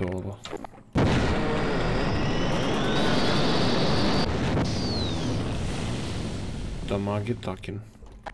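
An energy weapon fires a crackling, humming beam.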